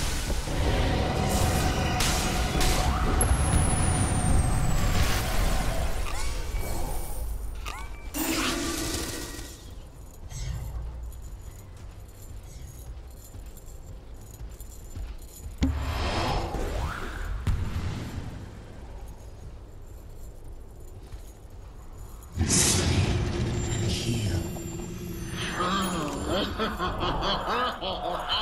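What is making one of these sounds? Spell effects crash and burst in a game battle.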